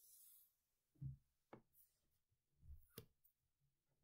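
A small object is set down on a hard table with a soft knock.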